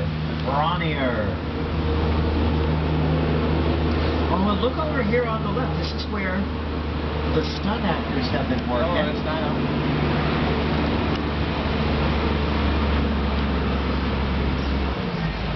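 A vehicle engine hums steadily and low throughout.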